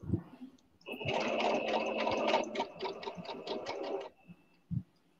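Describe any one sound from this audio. A sewing machine runs briefly.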